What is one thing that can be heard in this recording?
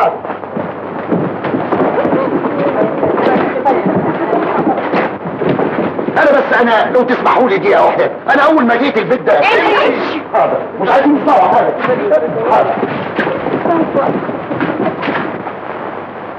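A crowd of women and men chatters excitedly.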